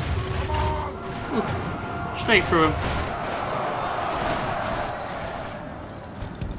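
A large crowd of soldiers roars in battle.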